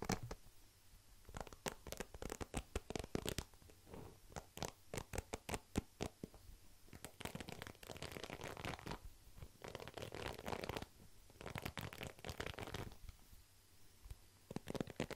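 Fingers flick the bristles of a hairbrush close to a microphone.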